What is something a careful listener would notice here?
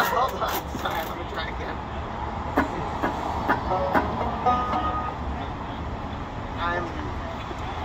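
A banjo plucks along.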